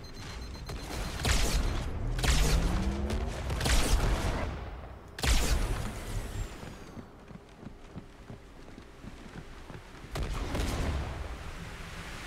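Loud whooshing blasts and impacts burst from a video game.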